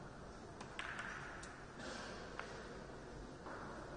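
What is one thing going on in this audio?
A pool ball rolls across the table and knocks against a cushion.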